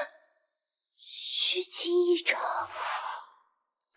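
A young woman speaks breathlessly, close by.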